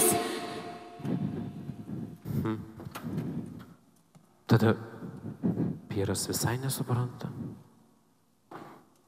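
A man speaks slowly in a large echoing hall.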